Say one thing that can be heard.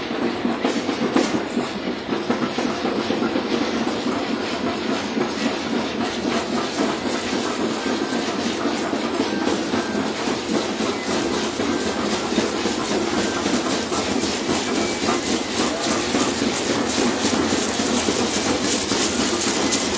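A crowd murmurs outdoors.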